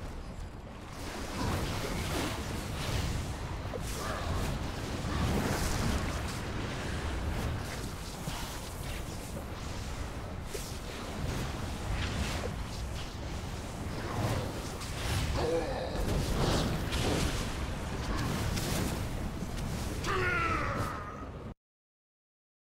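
Fiery spells whoosh and burst in a game battle.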